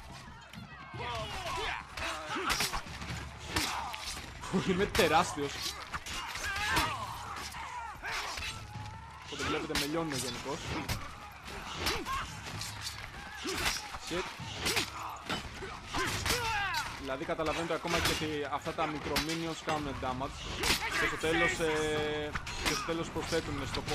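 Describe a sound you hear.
Swords clash and strike repeatedly in a battle.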